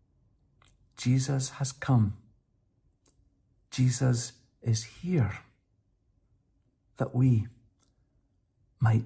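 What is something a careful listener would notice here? An older man speaks calmly and close to a microphone, in short phrases with pauses.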